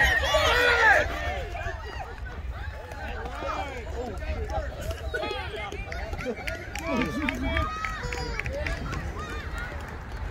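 Young players chatter and call out from the field.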